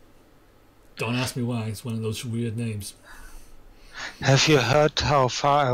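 A man speaks with animation through a headset microphone, heard as over an online call.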